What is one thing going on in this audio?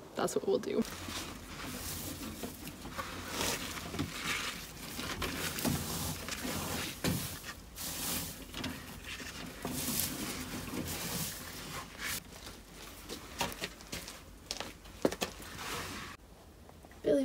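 Wood shavings rustle and crunch as hands rake through them.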